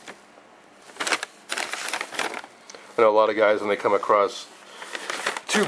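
Small cardboard boxes rustle and scrape.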